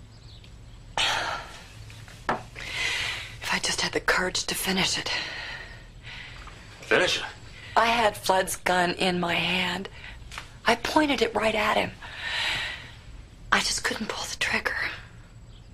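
A woman sobs and speaks through tears, close by.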